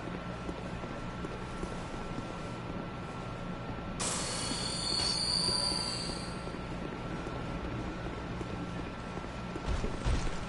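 Footsteps clatter on stone as a knight runs.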